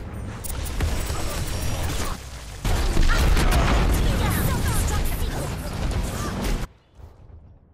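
Gunfire and explosions boom loudly in a video game.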